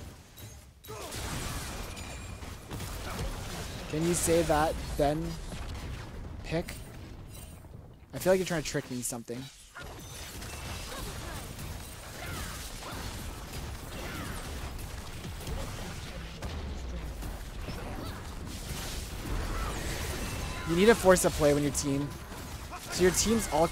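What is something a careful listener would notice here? Video game battle sounds clash and crackle.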